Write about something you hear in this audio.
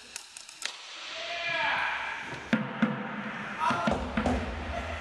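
A crowd cheers and whoops in a large echoing hall.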